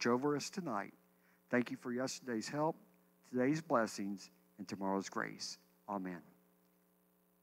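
An elderly man speaks calmly into a microphone, heard through loudspeakers.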